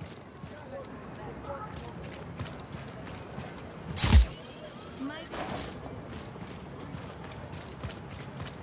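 Footsteps crunch quickly on dry dirt.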